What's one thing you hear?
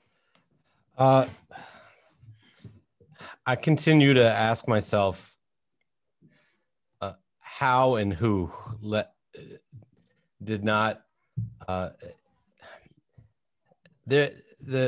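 A man speaks with animation over an online call, in short bursts with pauses.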